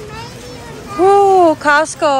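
A young girl calls out in a drawn-out voice.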